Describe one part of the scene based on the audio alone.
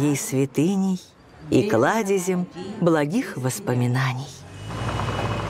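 A woman speaks close by with emotion.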